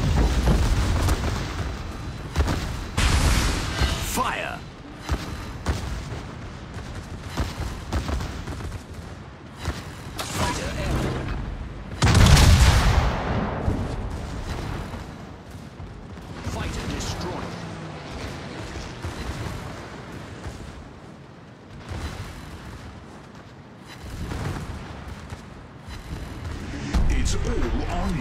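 Heavy naval guns boom in loud, deep blasts.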